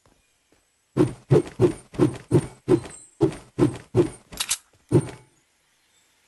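A pickaxe strikes wood again and again with sharp, fast thuds.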